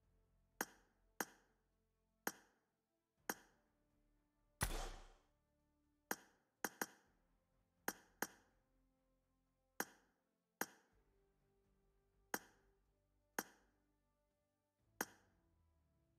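Short, sharp clicks sound again and again from a game's menus, each with a brief ringing tail.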